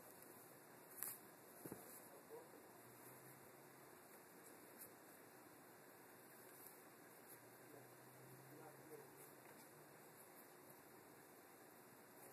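Small glass pieces click softly as fingers handle them.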